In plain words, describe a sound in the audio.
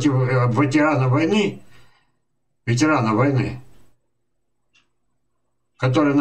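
An elderly man speaks calmly into a microphone, in short phrases with pauses.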